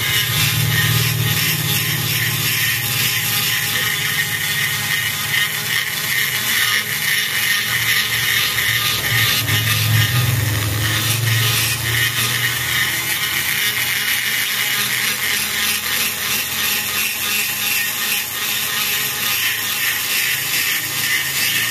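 A rotary grinder whines as it ports an aluminium cylinder head.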